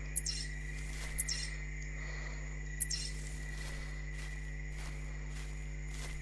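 Footsteps rustle through tall grass and ferns.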